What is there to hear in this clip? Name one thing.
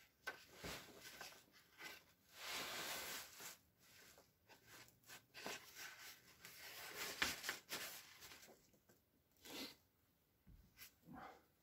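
A plastic sheet rustles and crinkles close by.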